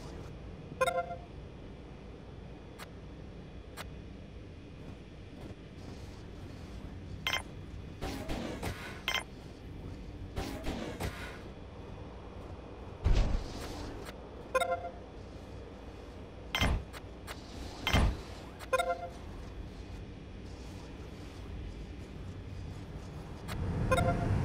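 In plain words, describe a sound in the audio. Short electronic chimes ring now and then.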